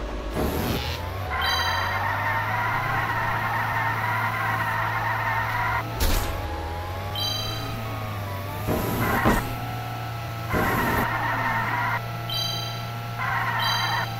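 A toy kart's engine hums steadily.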